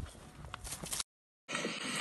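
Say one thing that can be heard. A horse's hooves thud as it lands from a jump.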